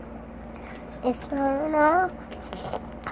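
A young child's voice calls out briefly, close by.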